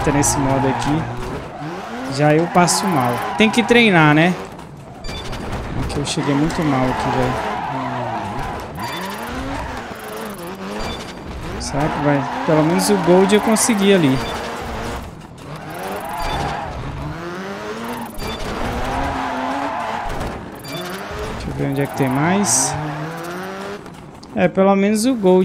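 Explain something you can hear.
A rally car engine revs and roars, rising and falling in pitch.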